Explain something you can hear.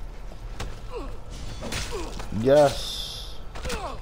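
A blade stabs into a body.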